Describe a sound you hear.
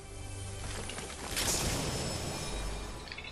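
A treasure chest opens with a shimmering chime.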